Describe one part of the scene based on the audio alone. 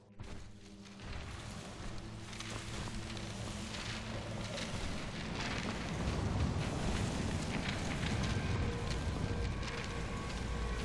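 A deep, eerie rushing sound swirls steadily.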